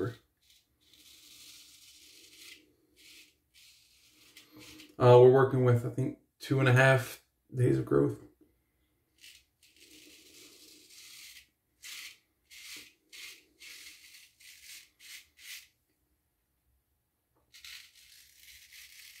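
A razor scrapes over stubble in soft, short strokes.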